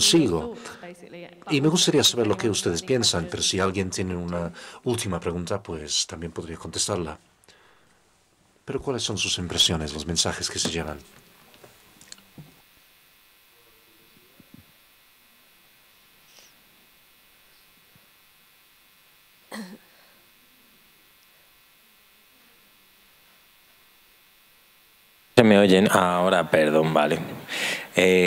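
A woman speaks calmly into a microphone in a large hall, pausing at times.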